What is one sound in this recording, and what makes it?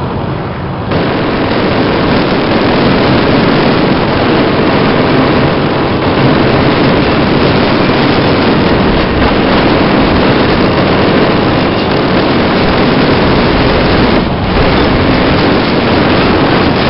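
A tank engine roars steadily.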